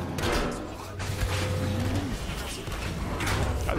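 Heavy punches thud.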